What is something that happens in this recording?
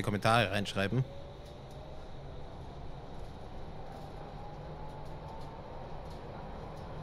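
A train's electric motor whines, slowly rising in pitch as it picks up speed.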